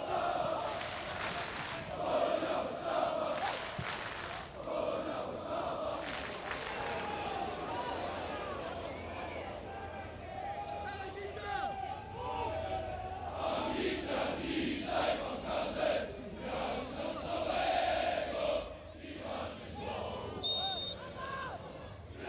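A stadium crowd cheers and roars steadily in a large open space.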